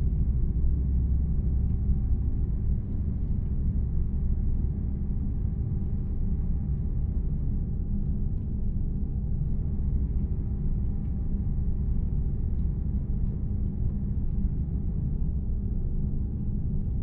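Tyres roll on the road with a constant rumble.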